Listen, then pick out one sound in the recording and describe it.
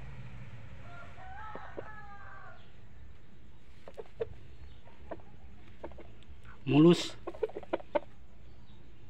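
A rooster clucks and calls close by.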